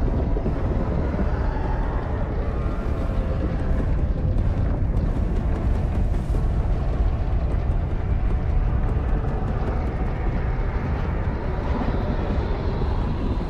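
A deep, steady rumble roars as fiery meteors streak down.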